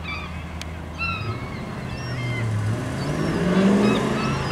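A car engine approaches and grows louder.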